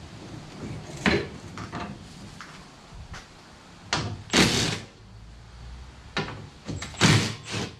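A metal bracket clanks against a plastic tank.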